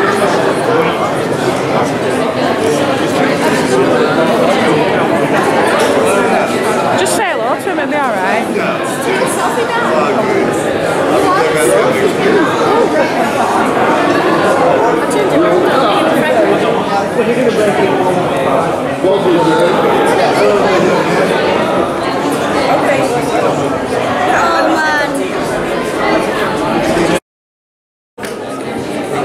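A crowd of people chatters all around in a large, echoing hall.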